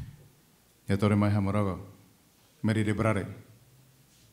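A second man speaks into a microphone in short phrases.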